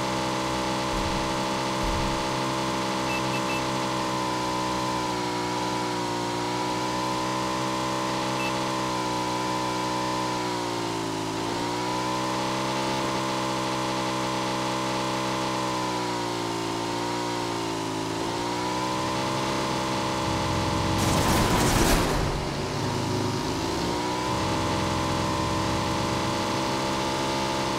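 A motorbike engine drones steadily, its pitch dipping and rising as it slows and speeds up.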